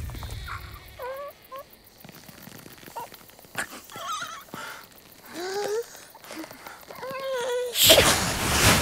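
A bird character murmurs and chuckles in a wobbly voice close by.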